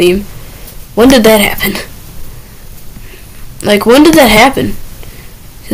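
A young boy talks with animation, close to a microphone, in short bursts.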